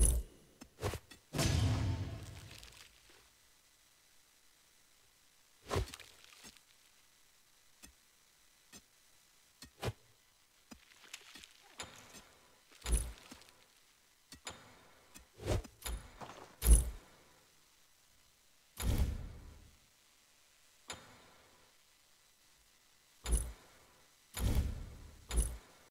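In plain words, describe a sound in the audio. Short game interface whooshes and chimes sound as menus and rewards open.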